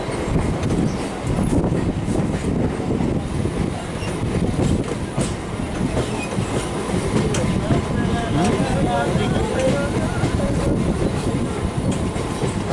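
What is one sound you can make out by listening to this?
A train rumbles and rattles along the tracks, heard from an open door.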